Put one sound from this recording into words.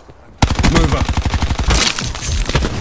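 Rapid gunfire bursts from an automatic rifle close by.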